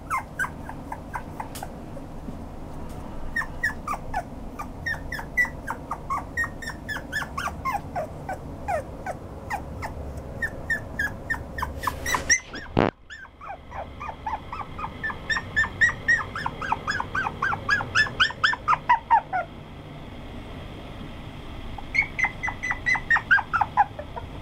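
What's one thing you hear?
A toy poodle puppy whimpers and squeaks in high-pitched cries.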